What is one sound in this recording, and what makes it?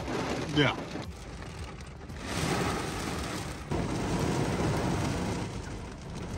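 Rain patters on a car windshield.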